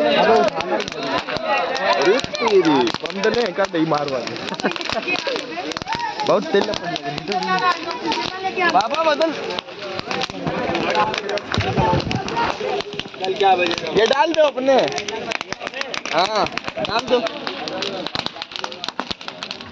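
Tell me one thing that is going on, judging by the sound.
A bonfire crackles and pops.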